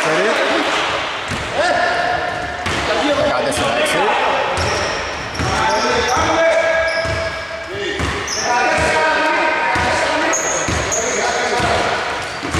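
A basketball thuds as it bounces on the floor.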